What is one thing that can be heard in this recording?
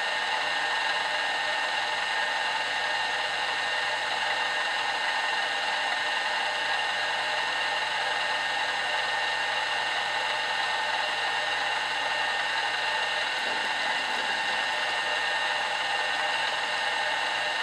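A milling machine whirs steadily with a high whine.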